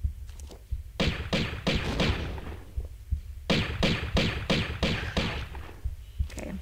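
Pistol shots fire in rapid bursts.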